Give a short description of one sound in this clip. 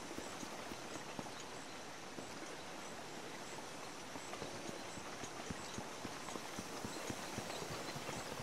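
Footsteps thud quickly on wooden boards.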